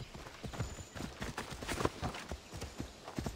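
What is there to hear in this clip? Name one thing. A horse's hooves pound on the ground.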